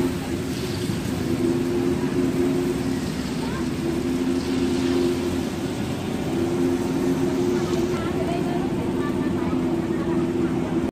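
A gas burner roars with a low rush.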